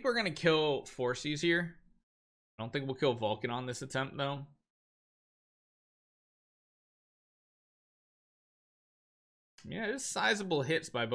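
A man talks into a close microphone with animation, in bursts with pauses.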